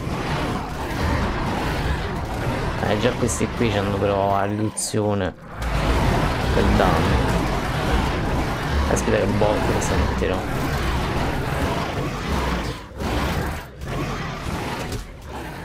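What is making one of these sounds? A large beast tears and bites at its prey with heavy thuds.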